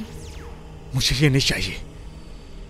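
A man speaks tensely up close.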